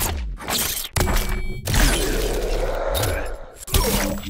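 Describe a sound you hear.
A metal chain rattles and whips through the air.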